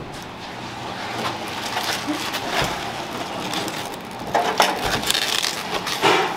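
A large cabbage leaf crackles as it is handled.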